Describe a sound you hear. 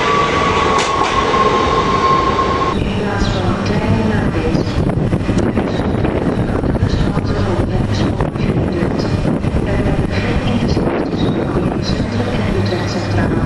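A train rumbles as it approaches.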